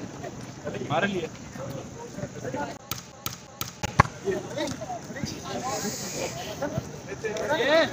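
A volleyball is struck sharply with a hand.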